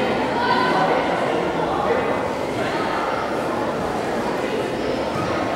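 A crowd of children and adults chatters and calls out in a large echoing hall.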